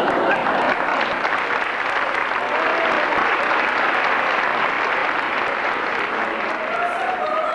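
A mixed choir of men and women sings together.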